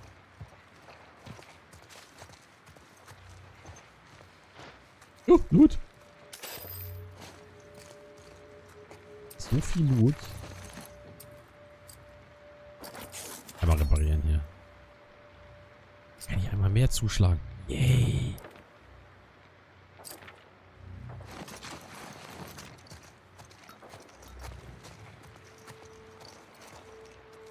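Footsteps crunch softly over debris on a hard floor.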